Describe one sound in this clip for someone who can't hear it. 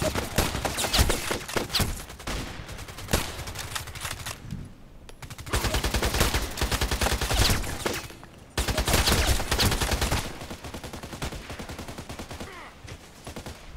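Sniper rifle shots crack loudly, one at a time.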